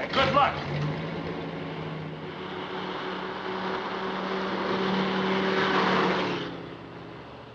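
A car engine hums steadily and grows louder as the car approaches.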